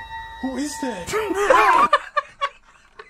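A young man asks a question in a frightened, hushed voice.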